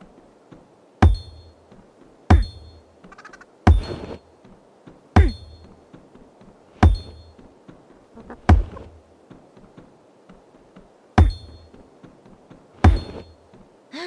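A punching bag is struck with heavy, ringing thuds again and again.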